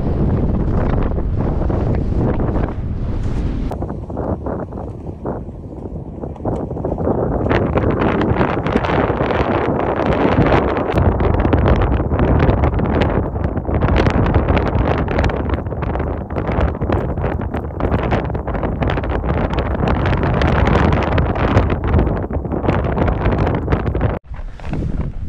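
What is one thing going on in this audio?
Strong mountain wind gusts against the microphone.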